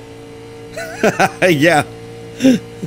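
A man laughs loudly, close to a microphone.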